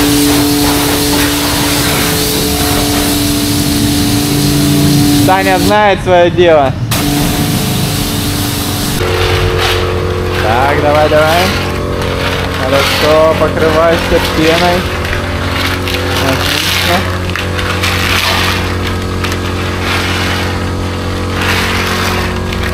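A pressure washer sprays water in a steady hiss.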